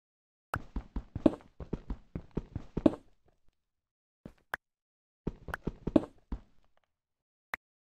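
Stone blocks break and crumble.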